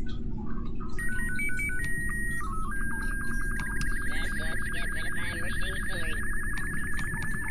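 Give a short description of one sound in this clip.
An electronic radio beacon beeps and then gives a steady high tone.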